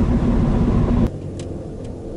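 A car engine roars on the road.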